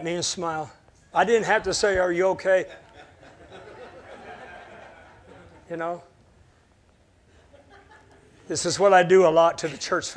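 A middle-aged man speaks with animation through a microphone in a large room.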